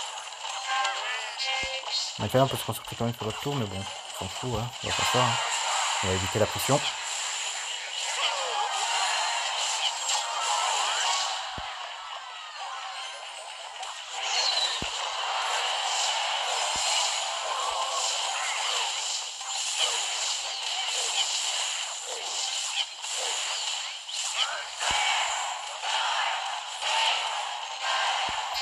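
Game battle sounds clash and crackle with music.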